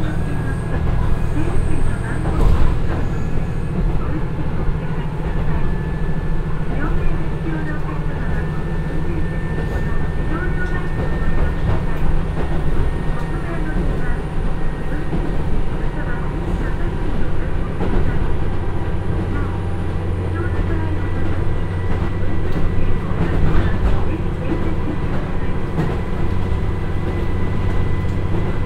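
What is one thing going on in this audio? A diesel train engine drones steadily from inside a moving railcar.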